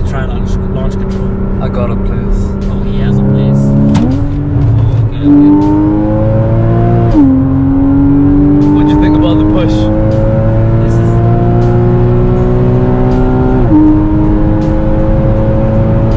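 A car engine revs up steadily, dropping in pitch with each gear change.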